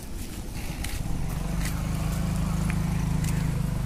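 A motorbike engine idles nearby with a steady low rumble.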